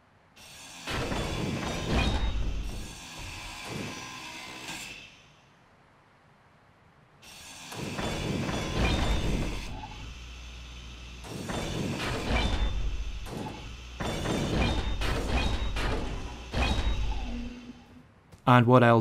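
A power grinder grinds against metal with a harsh whine.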